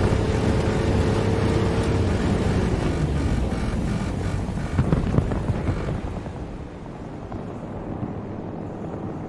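A heavy tank engine rumbles steadily, then quietens.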